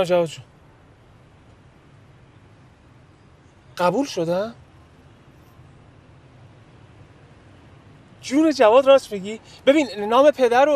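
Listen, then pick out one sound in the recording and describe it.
A young man talks on a phone in short, tense bursts with pauses between.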